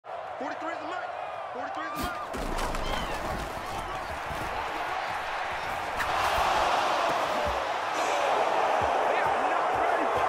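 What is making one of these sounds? A large stadium crowd roars steadily, growing louder partway through.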